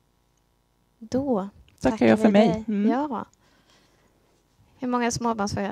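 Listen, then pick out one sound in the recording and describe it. A woman speaks calmly through a headset microphone.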